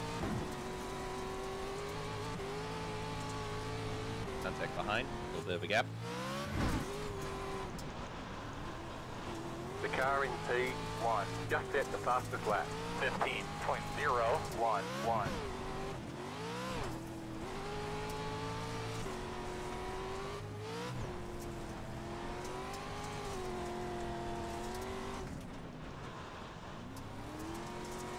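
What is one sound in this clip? A race car engine drones steadily, rising and falling in pitch as it revs.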